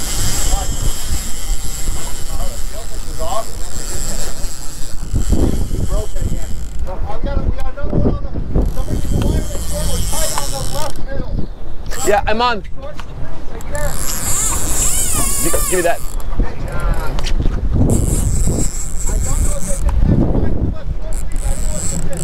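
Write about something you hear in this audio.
Wind blows hard outdoors over open water.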